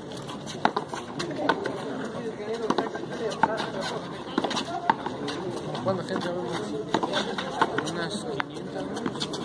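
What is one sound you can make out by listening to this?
Shoes scuff and squeak on a concrete floor.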